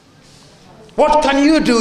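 A young girl speaks up close.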